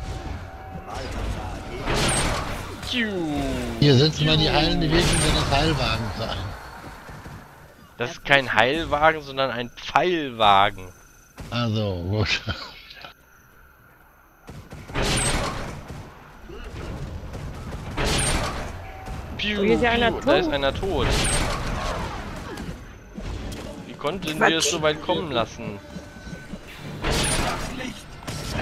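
Fiery spells burst and crackle in a game battle.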